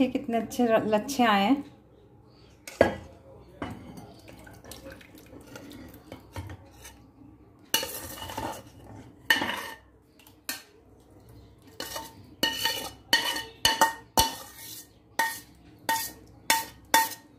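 A metal spoon scrapes against a metal pan.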